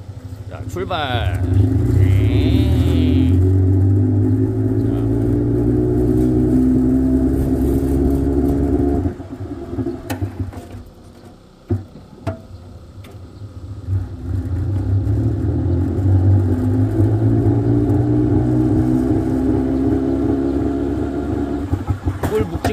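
A honey extractor spins with a steady, low mechanical whir, stops, then spins up again.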